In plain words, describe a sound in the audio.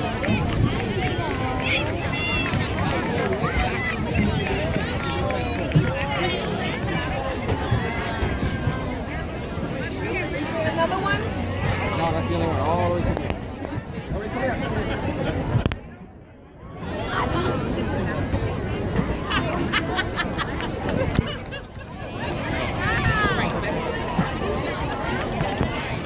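A crowd of spectators chatters and cheers outdoors close by.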